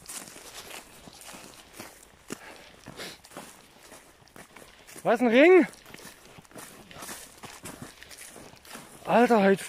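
Footsteps crunch over dry stubble.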